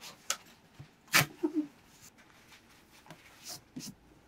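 Hands rub and press tape down onto cardboard.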